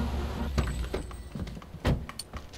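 A vehicle engine rumbles low.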